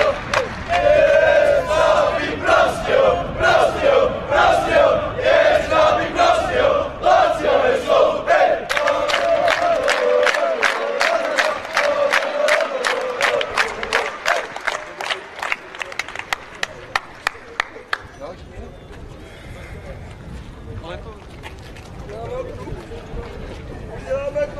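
Many feet shuffle and tread on pavement.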